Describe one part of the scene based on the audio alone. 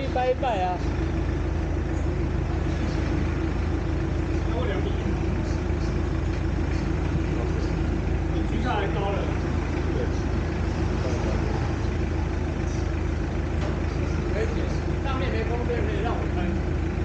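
Men talk casually nearby, with short bursts of speech.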